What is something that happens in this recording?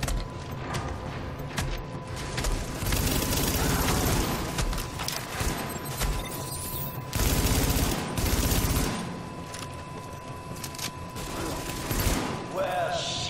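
Rifles fire in rapid bursts.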